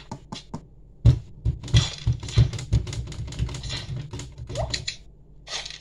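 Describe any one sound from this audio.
Fingertips tap lightly on a touchscreen.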